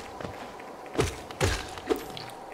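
A game sword slash whooshes and strikes.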